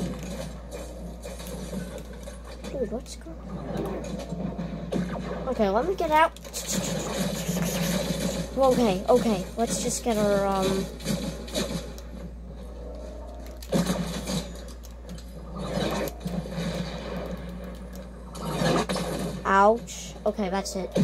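Video game music and effects play from a television speaker.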